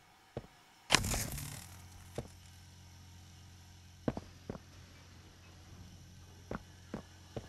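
An electric hum starts up and drones steadily.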